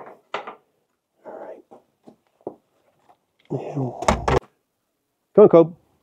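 A wooden door creaks and thuds open.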